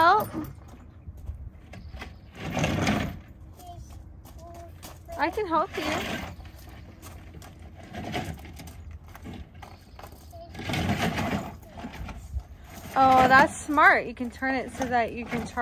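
Plastic toy wheels roll and crunch over gravel.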